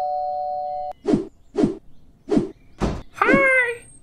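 Knocks sound on a wooden door.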